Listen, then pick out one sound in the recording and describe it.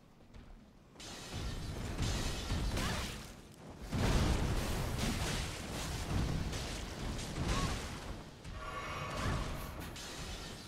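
A huge beast stomps and thuds heavily.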